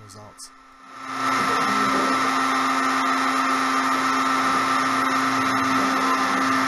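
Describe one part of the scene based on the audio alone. A router motor spins up and whines steadily at high speed.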